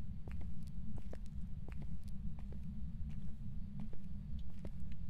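Footsteps echo slowly on a hard floor.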